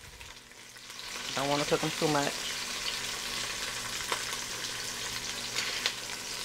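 Onions sizzle and hiss in a hot pot.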